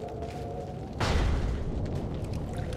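A heavy metal door bangs open.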